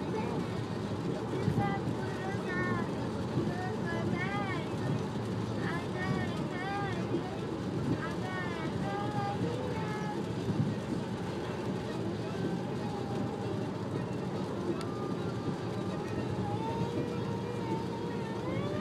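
A car's engine and tyres rumble steadily from inside the car.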